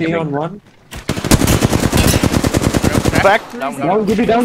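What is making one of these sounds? A rifle fires in a rapid burst of shots.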